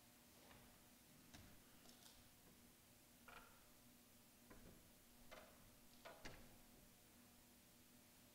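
A piano plays a few soft, scattered notes.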